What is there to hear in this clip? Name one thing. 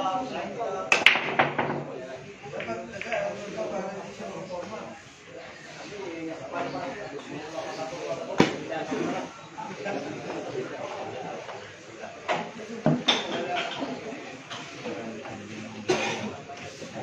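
Billiard balls clack sharply against each other.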